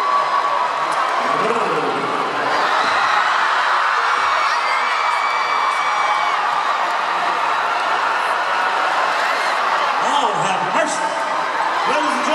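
A large crowd cheers and screams loudly in a big echoing arena.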